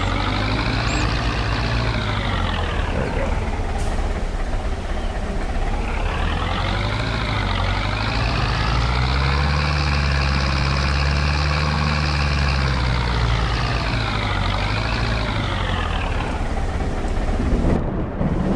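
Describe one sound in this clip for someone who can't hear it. A tractor engine revs up and down as it drives.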